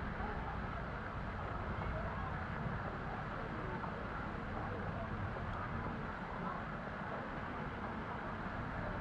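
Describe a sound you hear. Wind blows outdoors in a steady low rumble.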